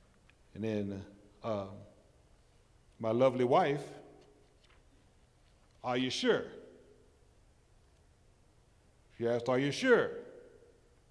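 An elderly man speaks slowly and emphatically through a microphone, in short bursts with pauses, in a large echoing hall.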